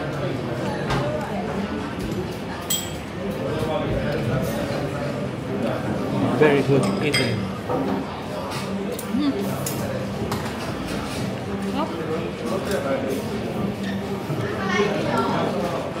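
Many people chatter in the background.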